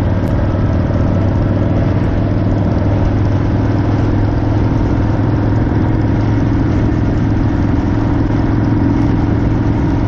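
A motorcycle engine rumbles steadily at cruising speed.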